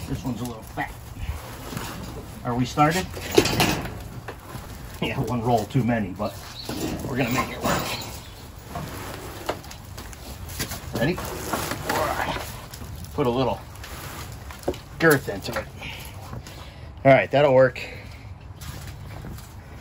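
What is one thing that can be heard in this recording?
Heavy bundles thud and scrape against a metal shelf.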